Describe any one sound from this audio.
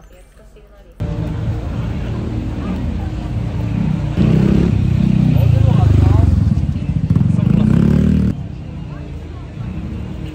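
A crowd murmurs on a busy street outdoors.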